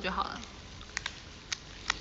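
A young woman bites into crunchy food.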